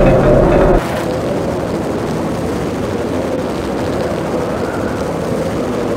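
A helicopter hovers with its rotor thudding.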